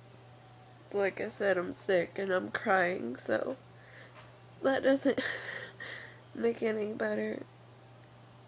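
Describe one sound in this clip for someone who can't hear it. A young woman speaks softly and close by, with pauses.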